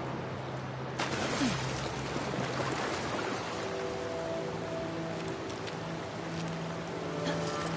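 Water splashes as a horse wades through a stream.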